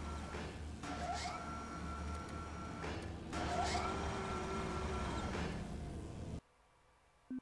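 A low mechanical hum drones with faint whirring.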